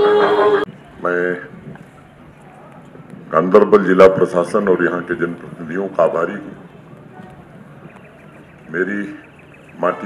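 An elderly man speaks into a microphone over loudspeakers, in slow phrases with long pauses.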